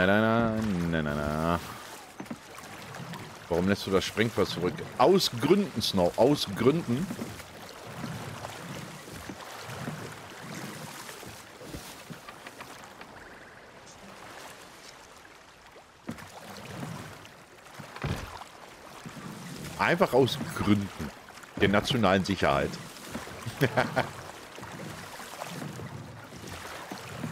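Ocean waves wash and splash.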